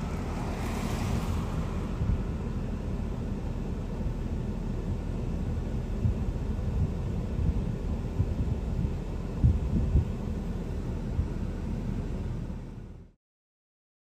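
Car engines idle nearby outdoors.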